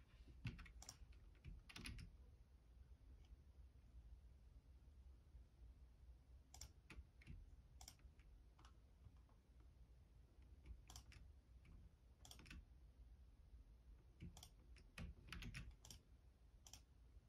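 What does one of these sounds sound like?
Keyboard keys click in short, scattered bursts of presses.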